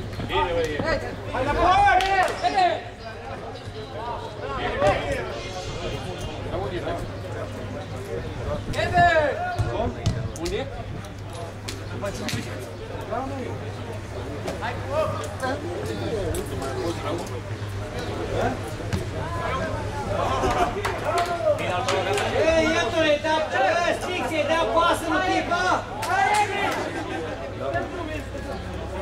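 Young men shout to one another on an outdoor court.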